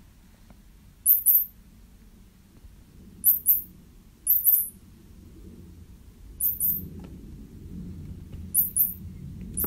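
A cat's paw taps on a tablet.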